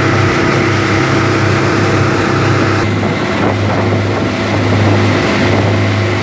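Wind rushes past loudly outdoors.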